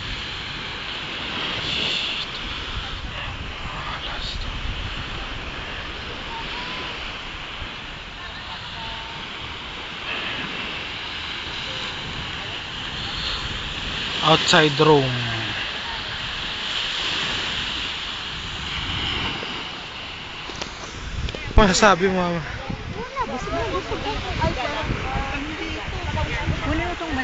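Wind blows outdoors across the microphone.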